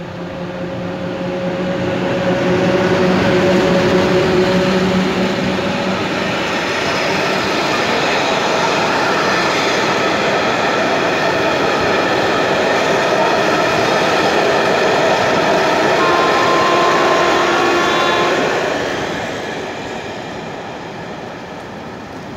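A long passenger train rumbles and clatters past on the rails, then fades away.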